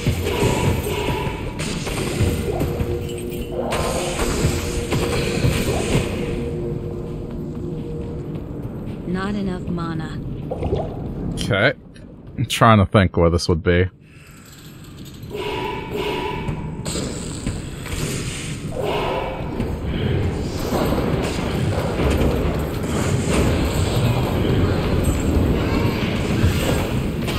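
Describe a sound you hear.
Weapons strike and clash in a fast fight.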